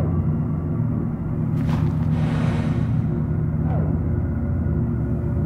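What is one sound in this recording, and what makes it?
A low electronic hum drones steadily.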